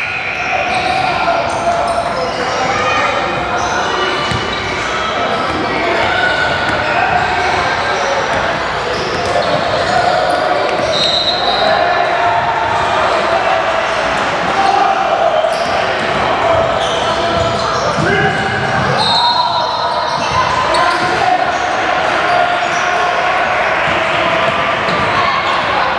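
Young girls and adults call out and chatter in an echoing hall.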